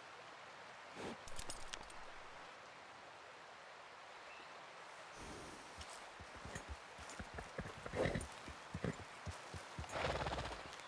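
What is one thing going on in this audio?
Horse hooves thud and splash on wet ground.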